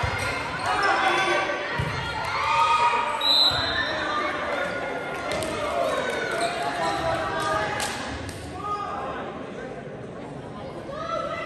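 A crowd of spectators chatters and calls out in a large echoing gym.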